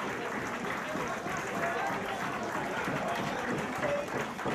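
A crowd claps.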